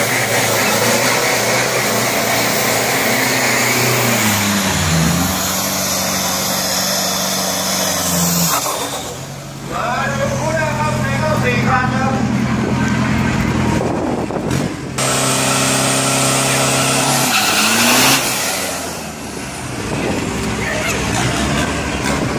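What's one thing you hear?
A van engine revs hard and roars close by.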